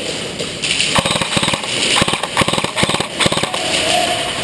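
An airsoft gun fires rapid bursts of snapping shots close by.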